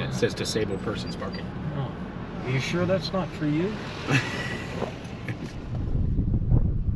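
A car engine hums from inside the cab.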